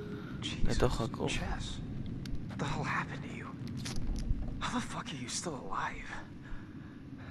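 A young man speaks in shock and alarm.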